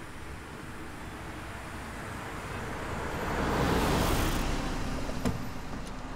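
A car engine hums as the car drives past.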